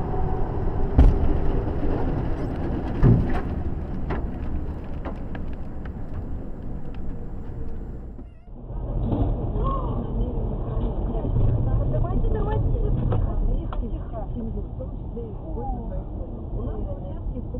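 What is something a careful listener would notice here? Road noise roars steadily from inside a moving car.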